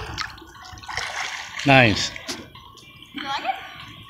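Water splashes as a boy swims.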